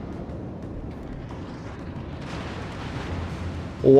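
Large naval guns fire with heavy booms.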